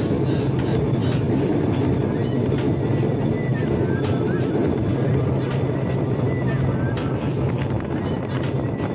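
Wind rushes past outdoors.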